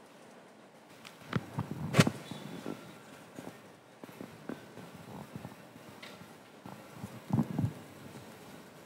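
Knocks and thumps sound as a man shifts and moves about.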